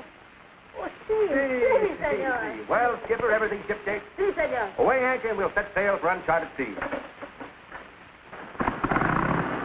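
Two men talk with animation close by.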